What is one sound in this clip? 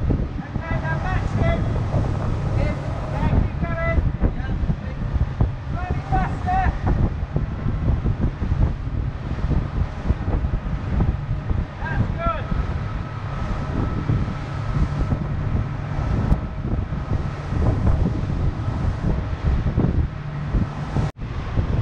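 A motorboat engine rumbles steadily up close.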